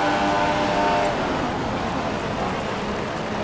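A Formula One car engine drops in pitch as the car brakes and downshifts.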